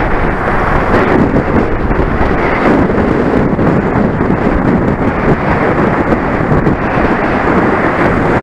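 Wind rushes loudly past a fast-moving bicycle.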